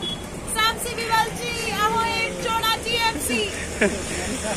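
A young woman calls out excitedly.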